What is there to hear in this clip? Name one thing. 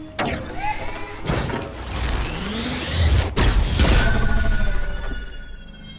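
A turret fires a loud blast.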